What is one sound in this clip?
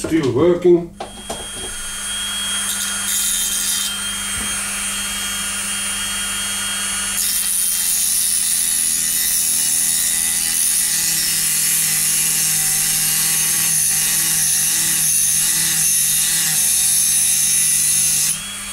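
A small rotary tool whines steadily at high speed.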